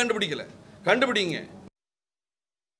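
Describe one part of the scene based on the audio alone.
A man speaks firmly into microphones.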